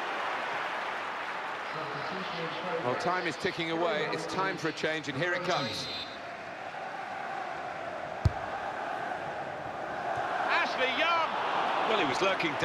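A stadium crowd roars.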